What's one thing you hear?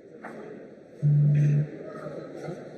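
A guitar amplifier gives a short, loud low buzz.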